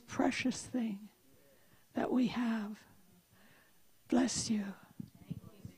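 An elderly woman speaks calmly into a microphone in short phrases.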